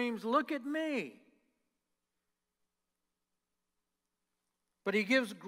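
An older man speaks through a microphone in a large echoing hall.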